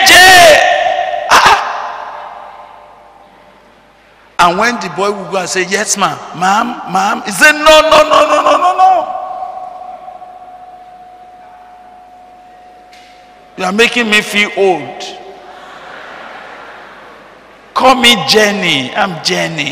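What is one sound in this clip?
A man preaches loudly and with passion through a microphone, his voice echoing in a hall.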